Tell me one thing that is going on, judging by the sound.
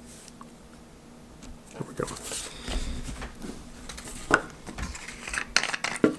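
Paper rustles on a table.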